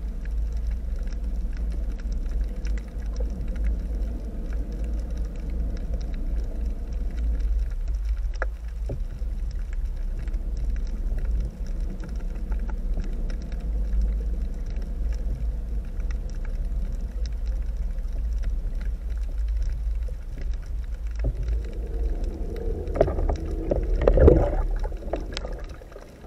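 A low, muffled underwater rumble drones steadily.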